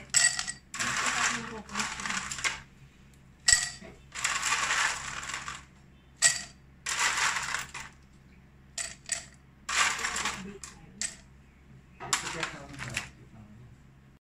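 Ice cubes clatter into a glass.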